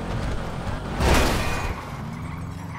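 A car crashes into something with a loud bang.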